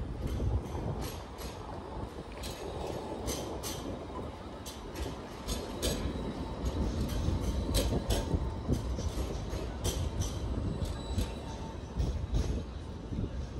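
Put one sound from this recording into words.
Footsteps tap on pavement nearby.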